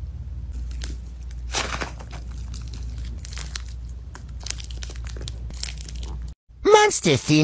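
Soft slime squishes and crackles as fingers squeeze it.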